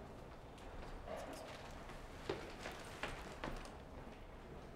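A man walks past close by.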